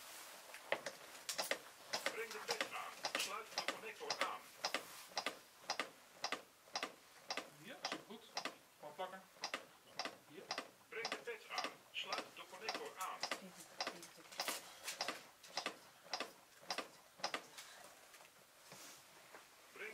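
Rapid rhythmic clicks come from chest compressions on a training manikin.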